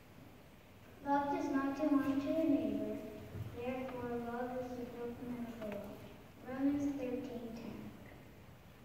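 A group of children sing together in an echoing hall.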